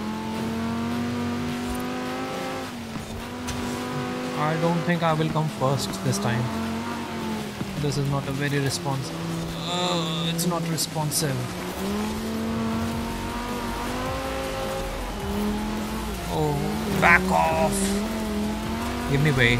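A racing car engine roars and revs up and down as gears shift.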